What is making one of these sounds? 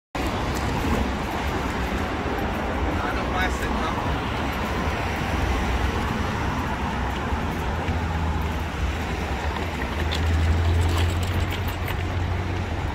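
Footsteps tap on a pavement.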